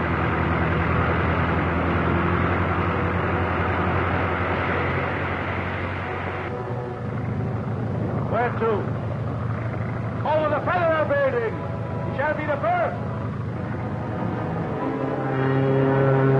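A biplane engine drones loudly as the plane flies past.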